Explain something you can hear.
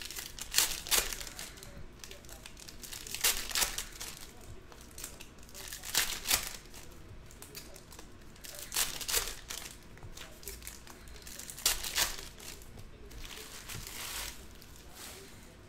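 Foil card packs crinkle and tear open in bursts.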